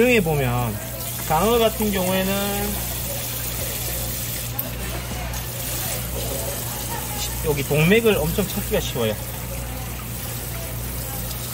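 Water sprays and splashes onto a wet surface.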